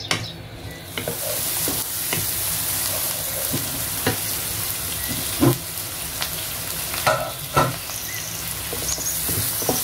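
Onions sizzle in hot oil in a pan.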